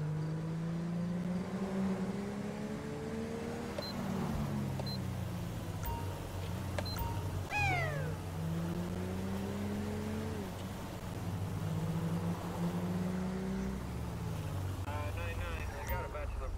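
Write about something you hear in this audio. A car engine hums and rises and falls in pitch as it shifts gears.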